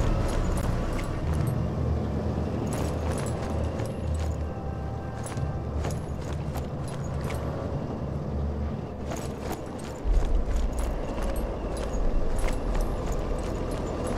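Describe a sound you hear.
Footsteps tread on a wooden floor.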